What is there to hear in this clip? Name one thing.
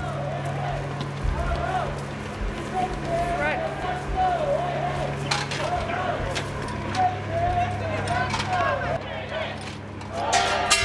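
A crowd of people chant loudly outdoors.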